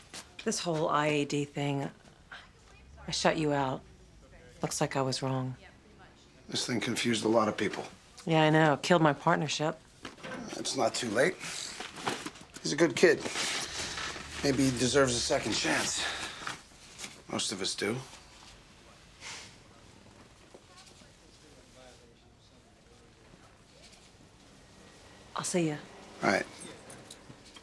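A woman speaks with a firm, questioning tone nearby.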